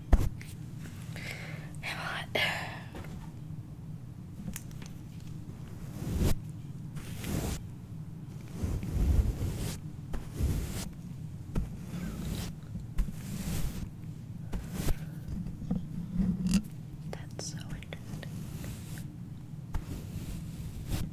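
A young girl whispers softly close to a microphone.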